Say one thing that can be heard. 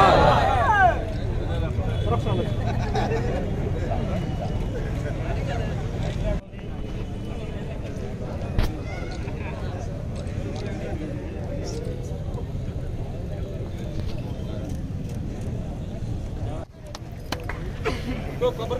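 A crowd of men murmurs and chatters outdoors.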